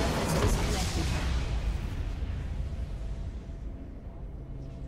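A deep, low game explosion rumbles and slowly fades.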